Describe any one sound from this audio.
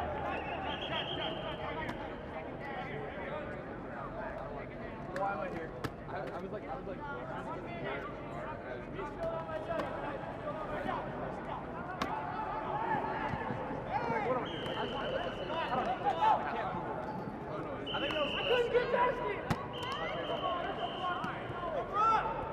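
Young men and women shout and call out across an open field.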